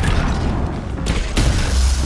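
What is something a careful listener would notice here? A fireball roars and bursts.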